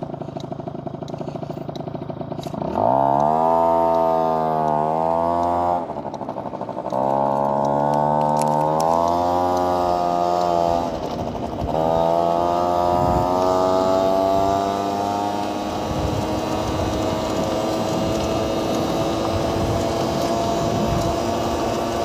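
A motorcycle engine idles, then revs up and pulls away, rising in pitch through several gear changes.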